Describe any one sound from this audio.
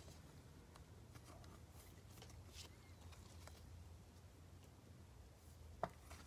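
Stiff plastic sleeves rustle softly as cards are handled.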